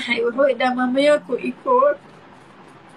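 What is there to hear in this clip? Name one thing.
A young woman talks tearfully close by.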